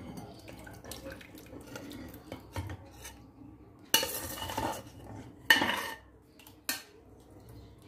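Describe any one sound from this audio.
A thick batter slops as it pours into a bowl.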